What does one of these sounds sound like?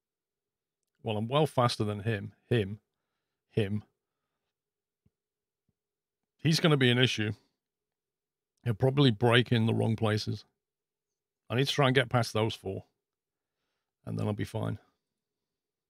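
A man speaks calmly and casually into a close microphone, in short bursts with pauses.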